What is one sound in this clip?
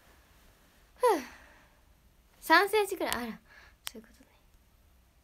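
A young woman speaks briefly and brightly, close to a microphone.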